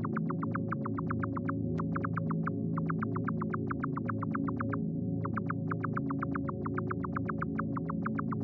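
Quick, soft footsteps tap steadily.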